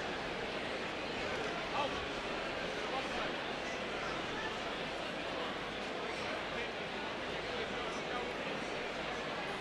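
An orchestra plays in a large echoing hall.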